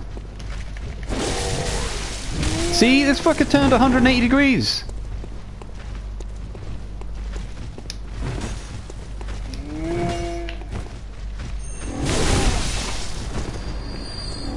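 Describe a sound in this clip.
Heavy blades swing and strike with sharp thuds.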